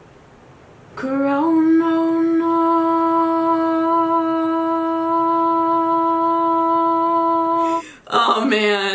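A young woman sings one long, steady note close to a microphone.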